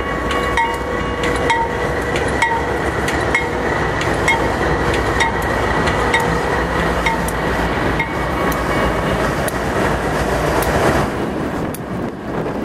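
Train wheels clatter and squeal over the rails.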